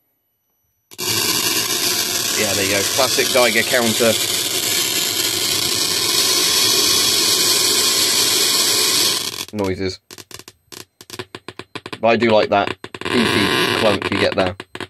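A radiation counter hisses and crackles loudly.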